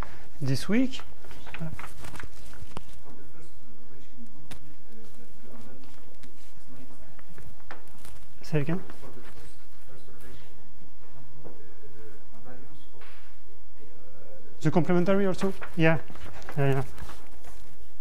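A young man speaks calmly in a room with a slight echo.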